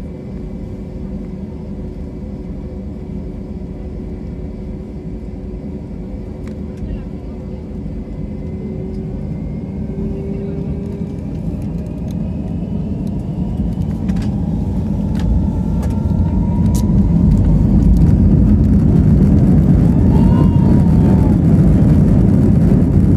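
Jet engines roar steadily and grow louder as an airliner speeds up.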